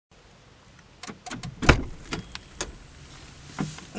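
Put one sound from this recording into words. A car door clicks and opens.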